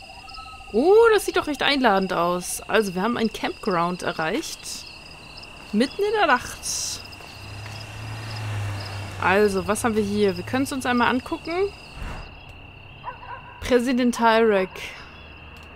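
A young woman talks with animation into a close microphone, her voice rising and falling.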